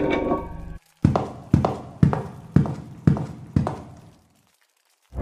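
Heavy footsteps thud slowly on a wooden floor, ringing out in an echoing room.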